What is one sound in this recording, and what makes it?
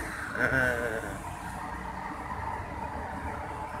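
A bus engine rumbles across the street.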